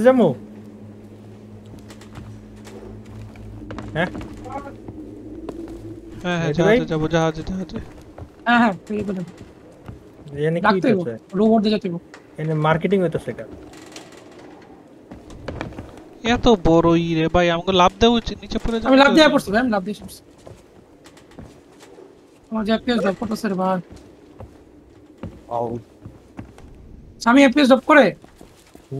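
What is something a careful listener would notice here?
Footsteps thud on wooden stairs and planks.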